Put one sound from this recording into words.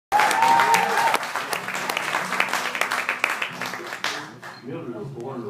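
An audience claps and cheers in a room.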